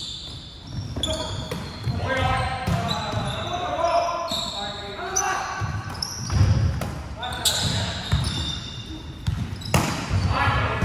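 A volleyball is struck with sharp slaps that echo around a large hall.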